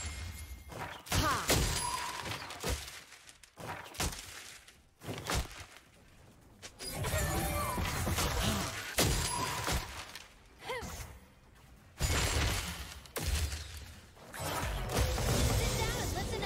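Game characters strike with clashing impacts.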